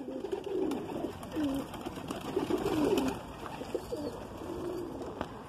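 A pigeon coos softly up close.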